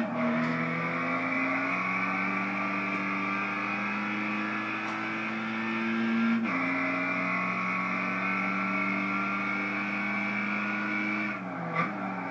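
A car engine roars steadily, rising in pitch through gear shifts.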